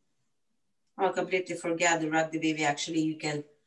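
A woman talks calmly and clearly through a microphone.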